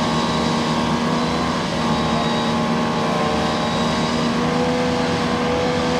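An engine roars loudly as a vehicle churns through deep mud.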